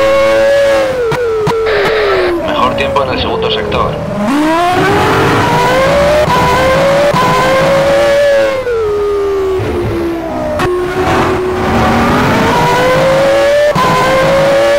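Gears shift with sharp clicks as the car brakes and accelerates.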